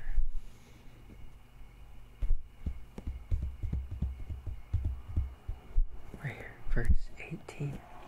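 Fingers tap lightly on a paper page.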